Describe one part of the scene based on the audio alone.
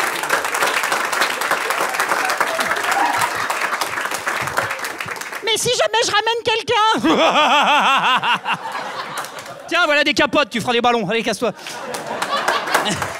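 An audience claps and laughs loudly in a room.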